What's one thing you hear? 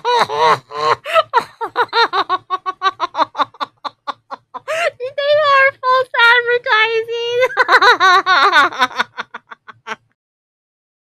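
A woman laughs hard and giggles close to a microphone.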